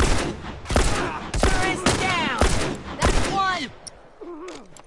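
Gunshots fire in rapid bursts, loud and sharp.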